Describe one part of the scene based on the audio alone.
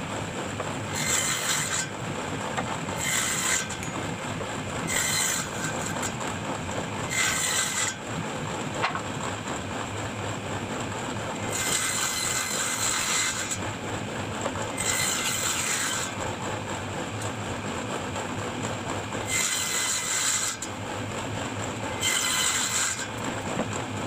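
A wooden board scrapes across a wooden table in short strokes.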